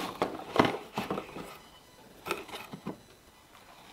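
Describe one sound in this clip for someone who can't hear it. A small glass bottle clinks against cardboard.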